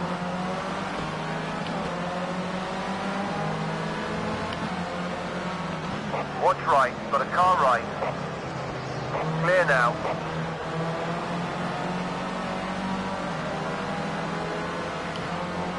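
A racing car engine whines steadily at high revs.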